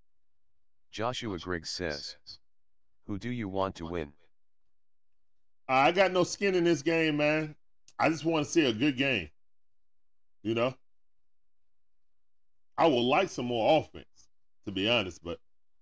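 A middle-aged man talks with animation into a microphone.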